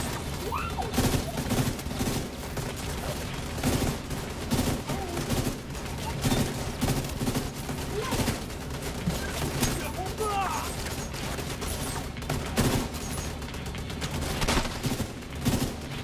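Rifles fire in quick bursts of gunshots.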